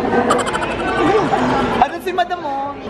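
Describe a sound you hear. A man and a woman laugh.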